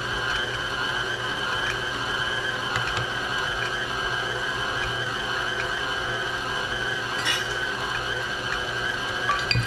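A stand mixer whirs steadily as its beater churns thick batter.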